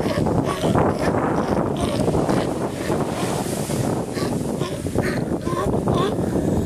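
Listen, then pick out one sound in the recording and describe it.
A sea lion barks and bellows loudly nearby.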